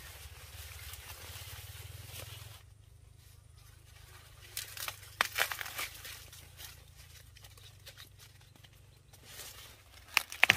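Corn leaves rustle as a person pushes through them.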